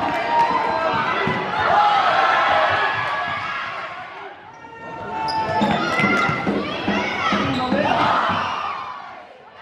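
Young girls shout and call out to each other in a large echoing hall.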